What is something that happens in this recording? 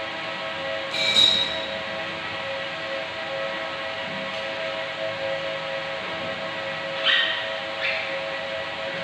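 Plastic and metal parts knock and clatter as a unit is handled.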